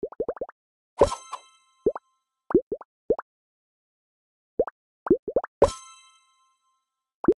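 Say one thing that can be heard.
A bright chime rings out when a cake is completed.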